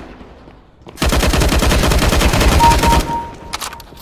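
A rifle fires in a rapid burst.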